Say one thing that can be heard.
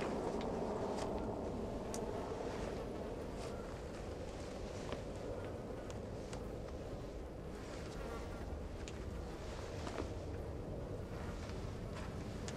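Clothing rustles as a body is dragged and handled.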